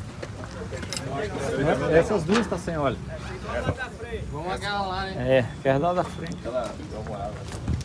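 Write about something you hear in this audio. A middle-aged man speaks with animation close by, outdoors.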